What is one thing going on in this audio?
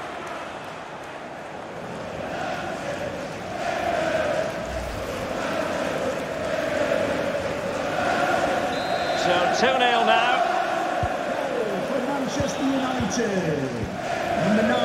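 A large stadium crowd chants and roars steadily.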